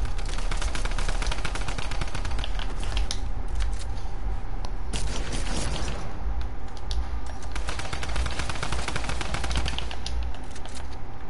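Building pieces snap into place with rapid clattering clicks.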